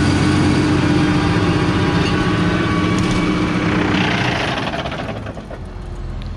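A seed drill rattles and clatters over soil.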